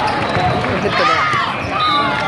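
A volleyball is struck with a thud.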